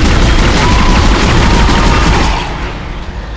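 A weapon fires with a loud, crackling roar.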